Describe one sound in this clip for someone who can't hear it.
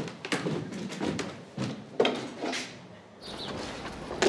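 A man's footsteps tap on a hard floor indoors.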